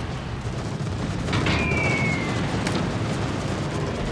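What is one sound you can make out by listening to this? Bombs explode with heavy booms and splashes in water.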